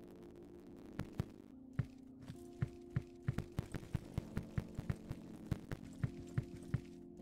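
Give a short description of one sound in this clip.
A sledgehammer strikes and smashes material with repeated heavy thuds.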